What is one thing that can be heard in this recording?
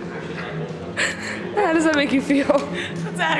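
A young girl squeals and laughs close by.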